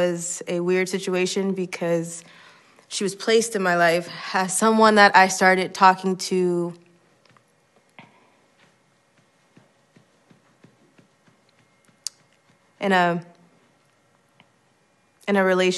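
A young woman speaks calmly and expressively close to a microphone.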